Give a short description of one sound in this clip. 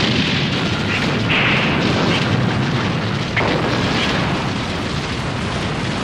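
A loud explosion rumbles and roars.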